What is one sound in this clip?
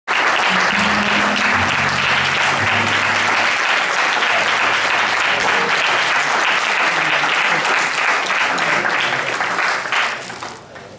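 A crowd claps their hands.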